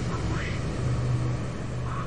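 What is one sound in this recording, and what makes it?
A burst of flame roars and crackles.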